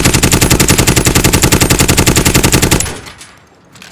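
An automatic rifle fires a rapid, steady burst.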